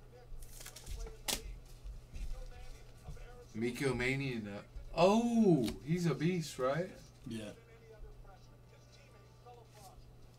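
Trading cards rustle and slide as hands handle them.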